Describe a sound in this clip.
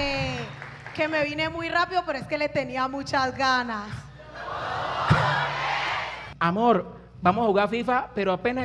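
Young people sing together in a chorus.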